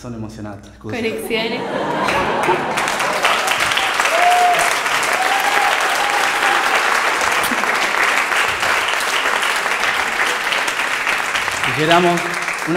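An audience applauds loudly in a hall.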